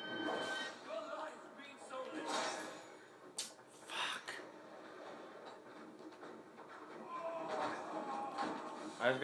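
Video game combat sounds with clashing blows play from a television speaker.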